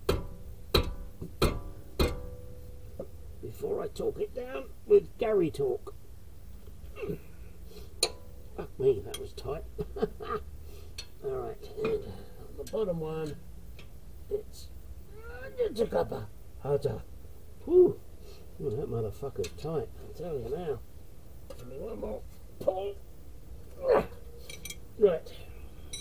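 Metal tools clink and tap against metal parts.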